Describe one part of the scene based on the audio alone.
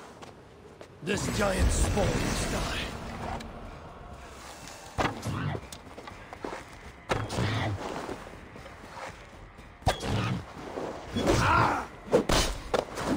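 An elk bellows loudly.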